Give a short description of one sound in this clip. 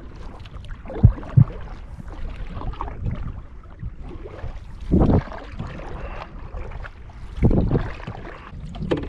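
A paddle splashes and knocks against a canoe.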